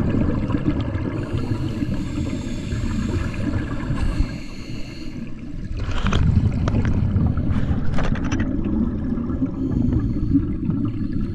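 Air bubbles from a diver's regulator gurgle and rumble underwater.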